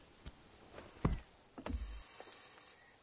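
A man climbs up with heavy thuds against a wooden floor.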